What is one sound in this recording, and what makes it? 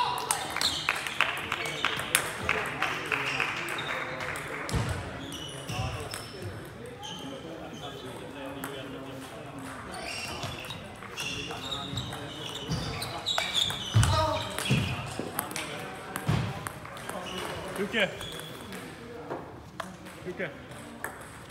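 A ping-pong ball clicks back and forth on paddles and a table in a large echoing hall.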